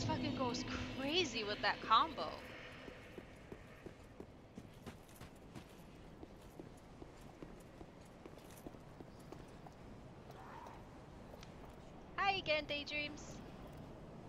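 A young woman talks into a microphone with animation.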